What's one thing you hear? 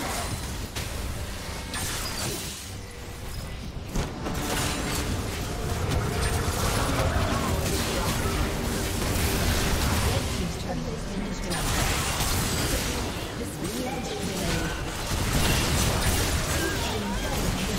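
Fantasy battle sound effects of spells whooshing and blasting play throughout.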